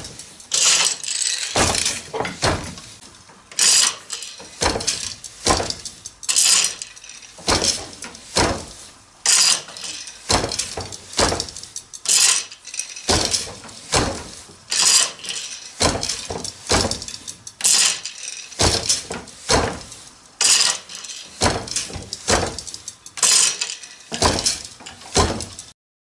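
A wooden loom beater knocks against the weave in a steady rhythm.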